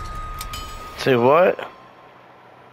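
A chime rings out with a rising shimmer.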